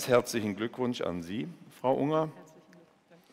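A man speaks briefly over loudspeakers in a large hall.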